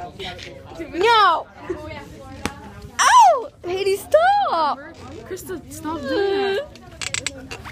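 A young woman shrieks and squeals loudly close by.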